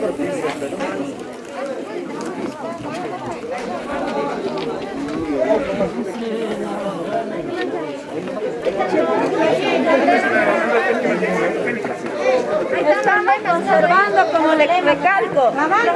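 A crowd of women and children chatters nearby outdoors.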